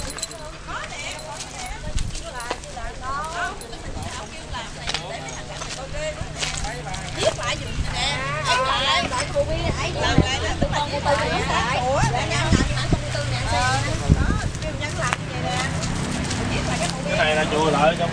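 Several women talk with animation nearby outdoors.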